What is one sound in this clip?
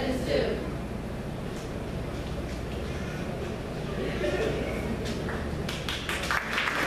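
A young woman speaks through a microphone in an echoing room.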